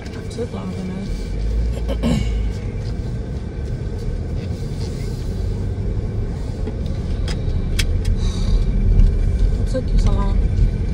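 A car engine rumbles low as the car drives.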